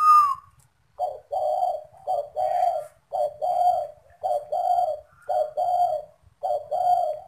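A dove coos in a steady repeated rhythm.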